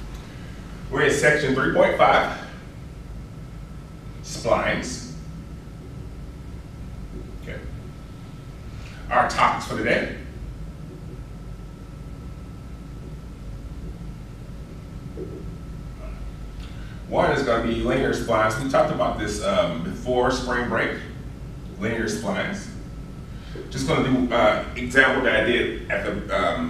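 A man speaks in a calm, lecturing voice.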